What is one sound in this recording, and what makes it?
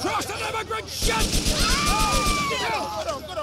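Rapid gunfire bursts out.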